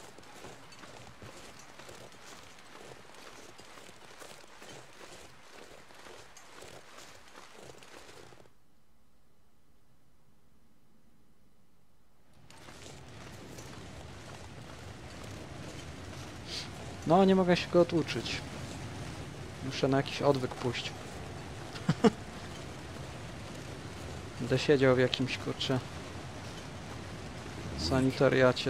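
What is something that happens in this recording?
Wind blows steadily with a soft hiss.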